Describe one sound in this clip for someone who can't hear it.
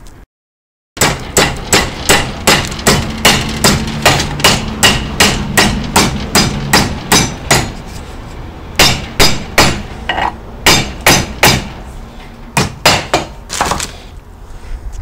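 A hammer strikes a steel rod held in a vise.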